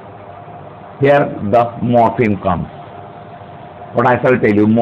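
An older man speaks calmly and clearly, as if teaching, close by.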